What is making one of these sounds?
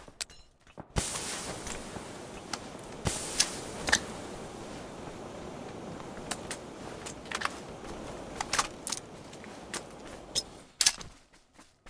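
Smoke grenades hiss steadily.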